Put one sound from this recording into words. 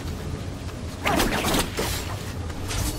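A blade swishes through the air in quick slashes.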